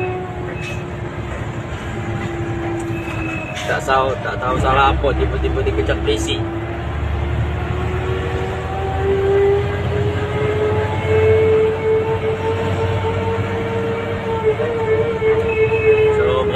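Tyres rumble on a road at speed.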